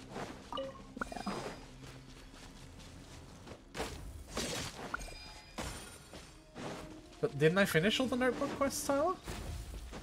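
Quick whooshing slashes and magical zaps sound in bursts.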